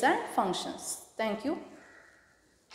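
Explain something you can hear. A young woman speaks clearly in an echoing room.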